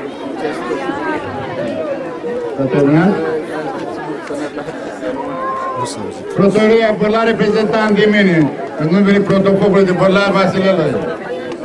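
An older man speaks into a microphone through a loudspeaker outdoors.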